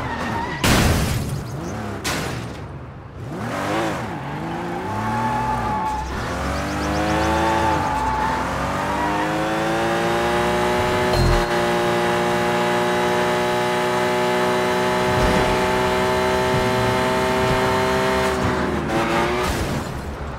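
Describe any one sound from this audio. A car engine revs hard and roars as it speeds up.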